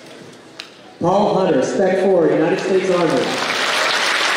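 A man announces through a loudspeaker in a large hall.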